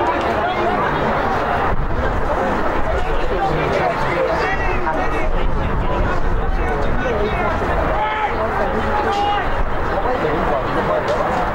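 Young men shout and call to one another across an open field.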